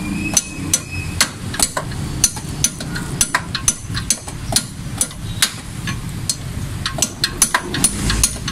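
A ratchet wrench clicks rapidly as a nut is turned on a wheel hub.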